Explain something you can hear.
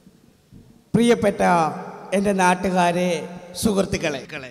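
A man speaks in a high, mock-female voice through a microphone.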